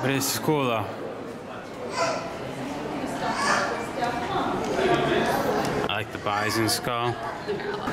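Adults chatter around in an echoing hall.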